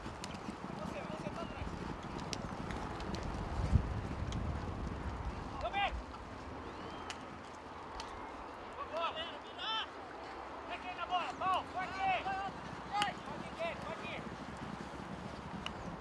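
Horses gallop across grass in the distance, hooves thudding softly.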